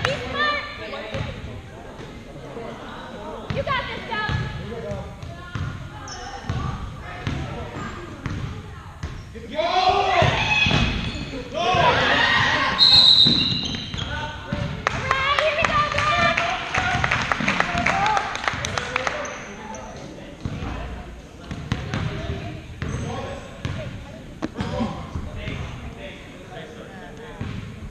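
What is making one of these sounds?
Spectators in a large echoing gym talk and shout.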